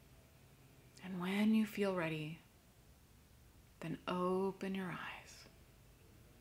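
A young woman speaks softly and calmly into a nearby microphone.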